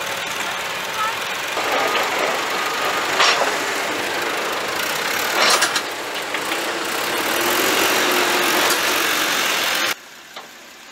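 Earth and debris pour from a loader bucket into a trailer.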